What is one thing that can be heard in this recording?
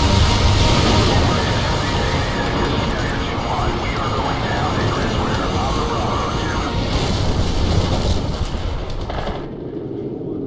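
Loud explosions boom and rumble deeply.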